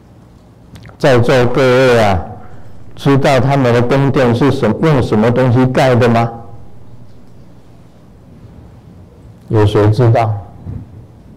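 An elderly man chants slowly into a microphone.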